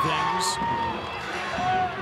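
Young women shout and cheer close by.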